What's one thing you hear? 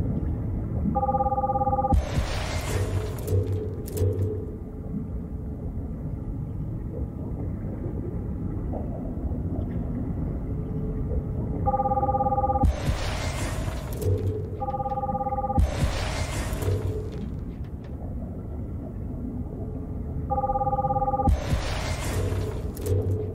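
A game menu plays short electronic chimes, each followed by a whoosh.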